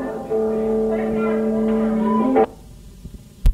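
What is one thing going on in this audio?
A band plays live music through amplifiers.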